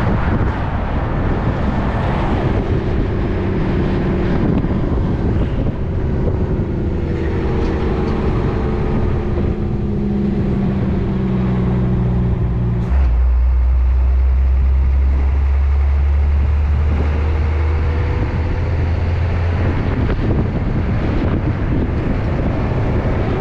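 Wind rushes loudly past the vehicle.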